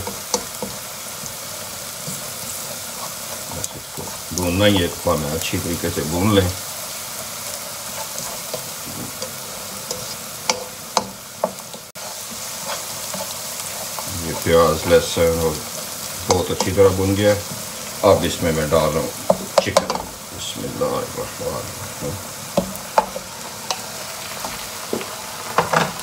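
A spatula scrapes and stirs in a frying pan.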